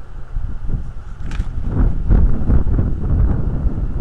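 Large wings beat as a bird takes off.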